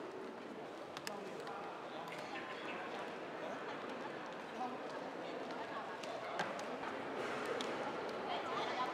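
A crowd of men and women murmur and talk nearby in a large echoing hall.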